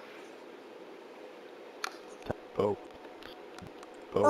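A soft click sounds as a menu opens.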